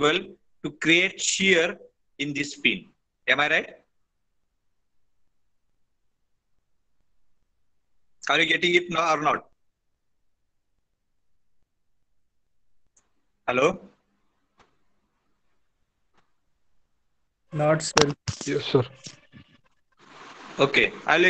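A man speaks calmly over an online call, with pauses between phrases.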